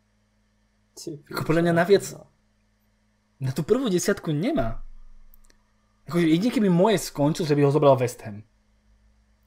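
A young man talks with animation over an online call, in short bursts.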